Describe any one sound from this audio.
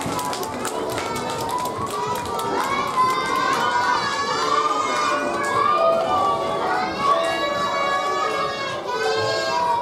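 A group of young children sing together.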